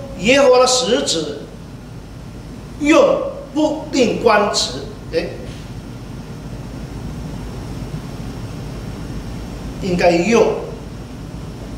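An elderly man speaks calmly and deliberately through a microphone, with long pauses.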